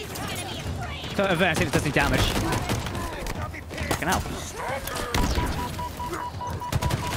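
Rapid gunfire bursts out in short volleys.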